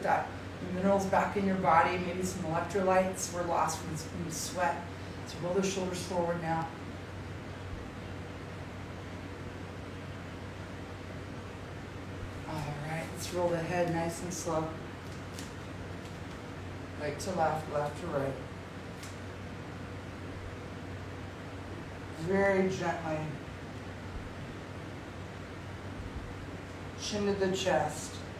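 A woman speaks calmly close by, in short phrases with pauses.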